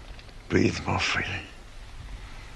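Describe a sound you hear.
An elderly man speaks weakly and hoarsely, close by.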